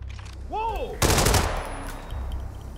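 A gunshot rings out and echoes.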